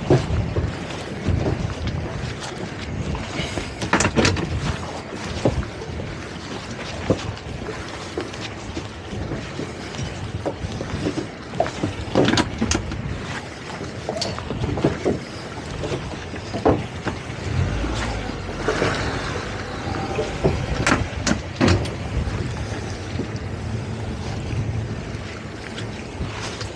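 Wind gusts and buffets loudly.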